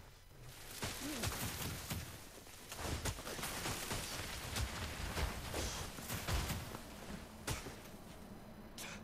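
Snow rushes and roars past.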